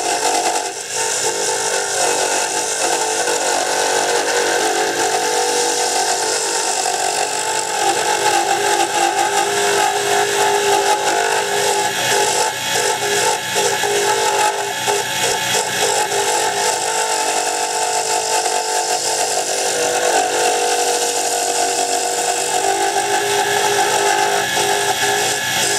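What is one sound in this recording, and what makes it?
A wood lathe runs with a steady hum.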